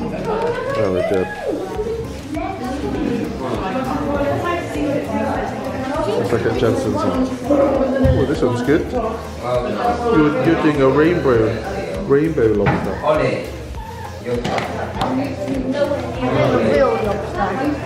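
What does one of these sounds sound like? Young children chatter and talk nearby.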